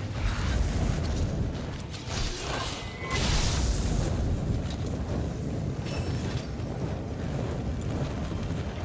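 Fiery blasts burst with deep booms.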